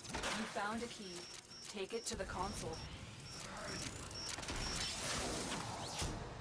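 Electronic chimes beep in quick short bursts.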